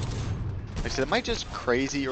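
Heavy gunfire blasts in rapid bursts.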